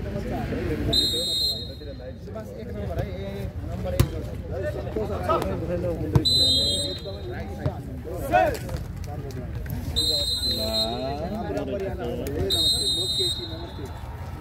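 A referee blows short, shrill whistle blasts.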